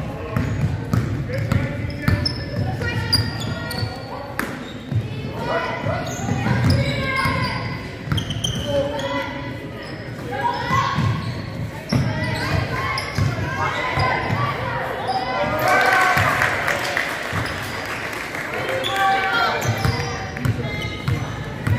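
A basketball bounces with dull thuds on a wooden floor.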